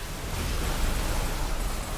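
Ice shatters with a loud crackling burst.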